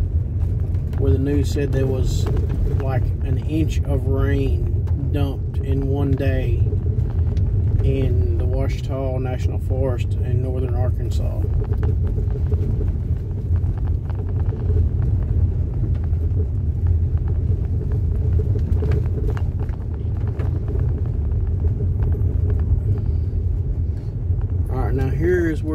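A car engine rumbles steadily while driving.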